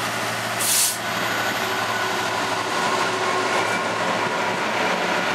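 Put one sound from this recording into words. A diesel locomotive engine rumbles loudly close by.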